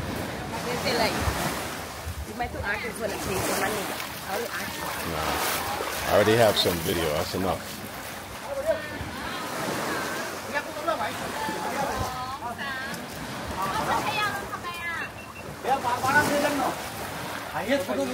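Several men and women chat casually nearby outdoors.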